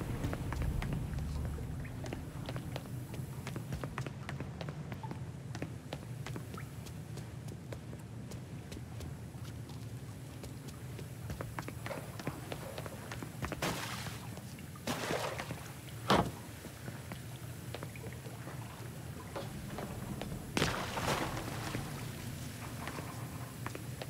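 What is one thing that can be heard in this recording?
Footsteps tap on a stone floor in an echoing underground space.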